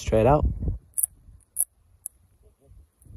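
Metal clicks sharply as hands handle a pistol.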